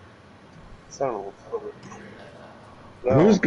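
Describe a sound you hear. A man speaks gruffly nearby.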